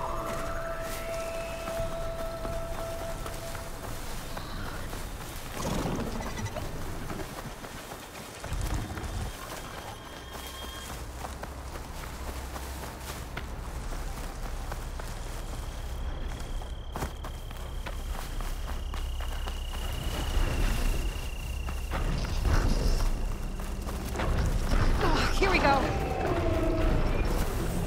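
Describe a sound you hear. Footsteps rustle through grass and ferns.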